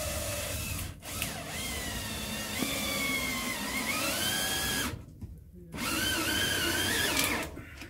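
A power drill whines in short bursts.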